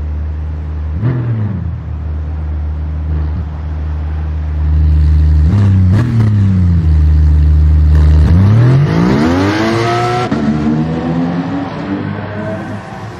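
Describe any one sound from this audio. A race car engine revs up sharply and roars away.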